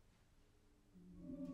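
A choir begins softly singing again.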